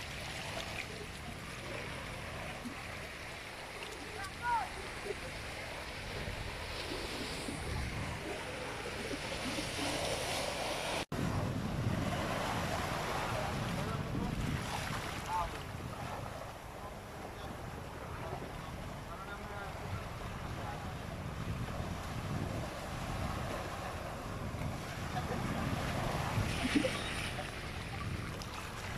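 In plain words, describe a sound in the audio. Waves wash and splash over rocks at the shore.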